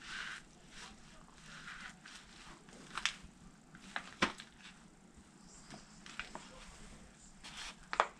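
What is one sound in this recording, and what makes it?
Boots squish and crunch into a soft pie crust.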